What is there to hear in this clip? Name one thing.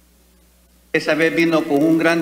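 An elderly man speaks into a microphone.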